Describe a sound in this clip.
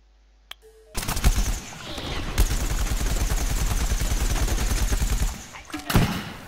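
A blaster fires in rapid bursts.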